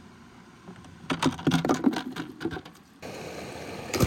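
Water splashes as a plastic tub is tipped into a river.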